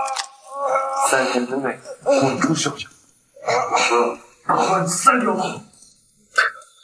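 A young man speaks sternly.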